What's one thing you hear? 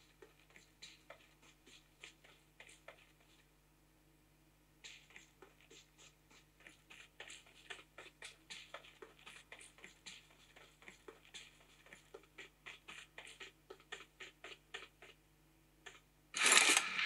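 Rapid gunshots pop quietly from a phone game.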